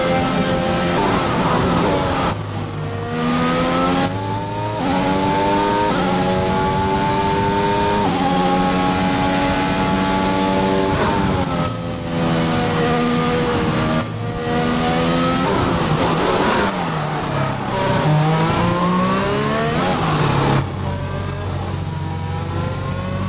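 A racing car engine roars, rising and falling in pitch as it shifts gears and brakes.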